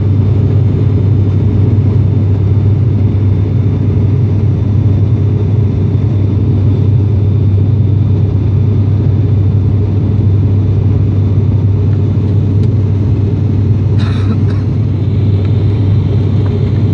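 An airplane's engines drone steadily in a low, loud roar.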